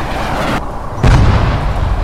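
A huge explosion booms nearby.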